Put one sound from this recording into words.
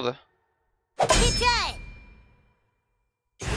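A sword swings and strikes with a sharp ringing clang.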